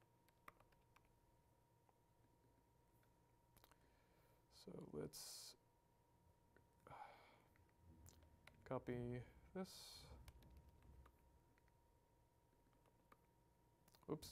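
Keys on a laptop keyboard click softly.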